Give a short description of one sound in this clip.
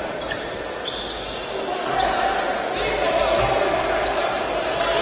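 A small crowd murmurs in an echoing hall.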